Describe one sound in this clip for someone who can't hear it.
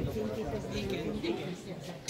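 A group of people talk in the distance, outdoors.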